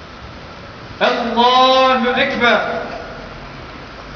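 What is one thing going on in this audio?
A man chants a short prayer call in a loud, drawn-out voice outdoors.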